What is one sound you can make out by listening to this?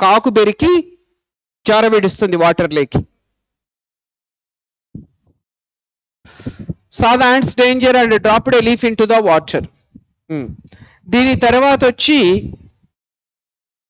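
A man lectures with animation, close to a microphone.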